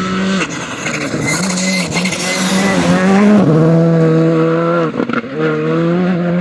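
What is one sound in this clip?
Gravel sprays and crunches under a car's tyres.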